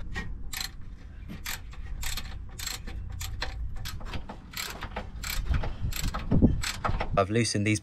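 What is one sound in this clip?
A ratchet wrench clicks quickly as a bolt is turned.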